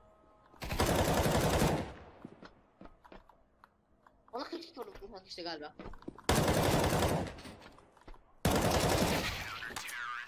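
Rifle gunfire bursts loudly and close by.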